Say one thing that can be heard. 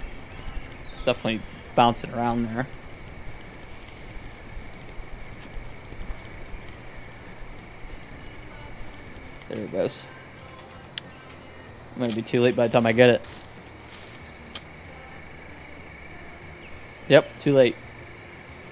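A young man talks briefly into a close microphone.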